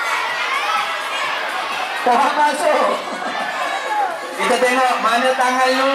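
A crowd of women chatters and cheers nearby.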